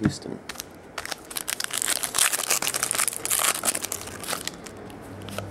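A foil wrapper crinkles and tears as it is ripped open.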